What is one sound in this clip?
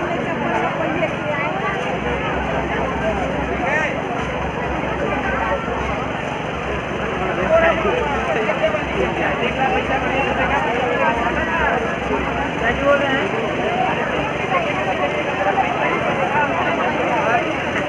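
A dense crowd chatters all around outdoors.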